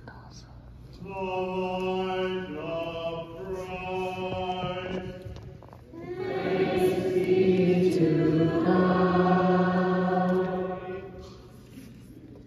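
A congregation sings together in a large echoing hall.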